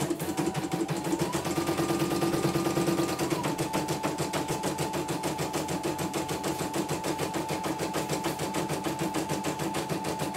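An embroidery machine stitches with a fast, steady rhythmic clatter and whir.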